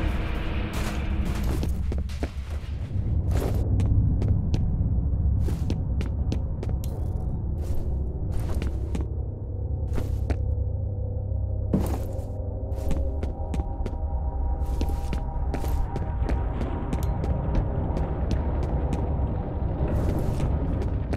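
Footsteps tap on a hard floor at a walking pace.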